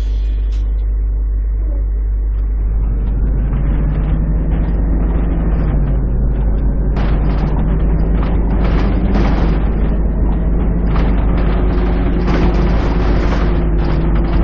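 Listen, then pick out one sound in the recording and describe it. Tyres roll over a road with a low rumble.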